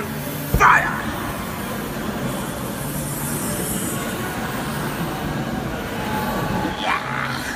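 A flame roars in bursts from a spray can.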